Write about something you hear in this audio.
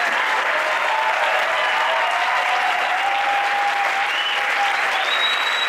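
A large crowd applauds loudly in a hall.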